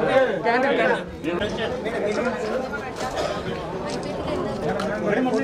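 A crowd of men and women chatter close by.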